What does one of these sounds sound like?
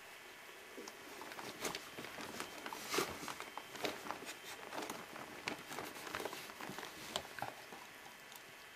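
A mother dog nuzzles newborn puppies on fleece bedding with soft rustling.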